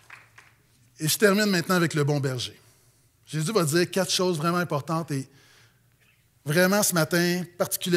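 A man speaks calmly and clearly into a microphone in a large room.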